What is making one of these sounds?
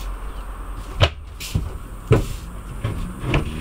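A wooden lid knocks as it is lifted.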